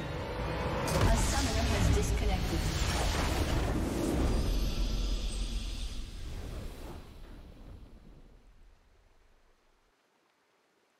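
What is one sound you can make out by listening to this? A triumphant victory fanfare swells and fades away.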